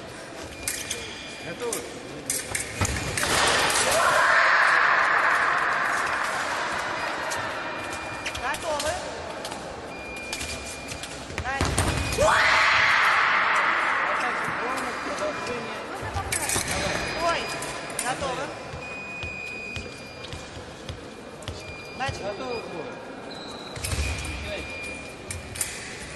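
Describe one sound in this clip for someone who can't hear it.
Shoes squeak and thump on a hard floor.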